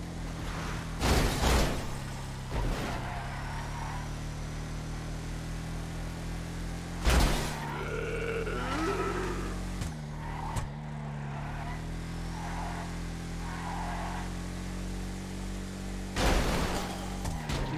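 Loud metallic crashes ring out as vehicles smash into each other.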